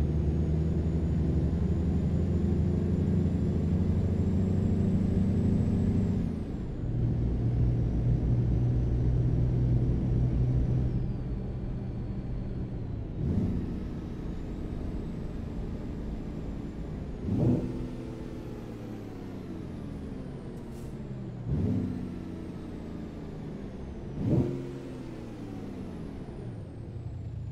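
A heavy truck engine rumbles, its pitch sinking and then surging again at each gear change.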